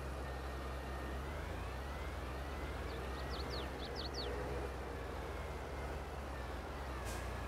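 A tractor engine hums steadily as the tractor drives.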